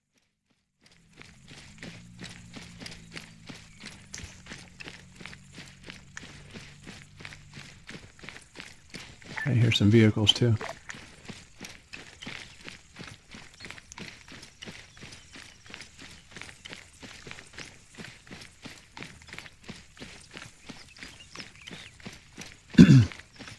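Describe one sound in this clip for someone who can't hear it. Footsteps crunch steadily through grass and dry ground.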